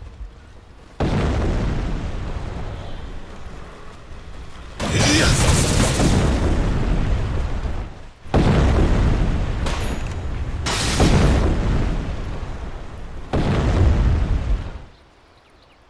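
Weapons clash and spells burst in a loud, busy battle.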